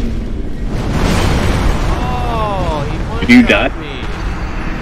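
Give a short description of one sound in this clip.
A deep roaring blast erupts and rumbles.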